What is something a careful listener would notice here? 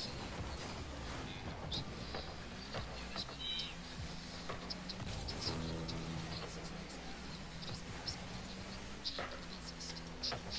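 Tyres and a car body thump and clatter in short knocks.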